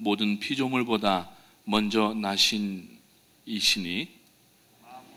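A middle-aged man reads aloud calmly into a microphone in an echoing hall.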